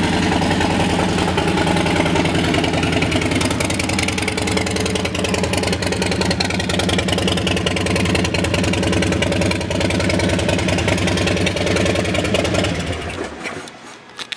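A motorcycle engine idles with a loud, deep rumble, then cuts off.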